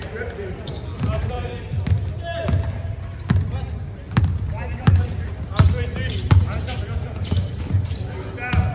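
A basketball bounces on a court floor in a large echoing hall.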